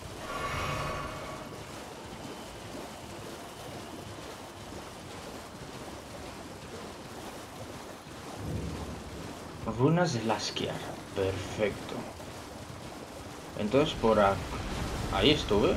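Hooves splash through shallow water at a gallop.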